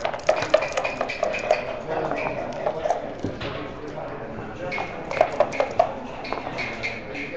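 Dice rattle quickly inside a leather cup.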